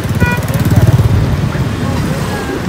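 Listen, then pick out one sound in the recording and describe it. A scooter rides past close by.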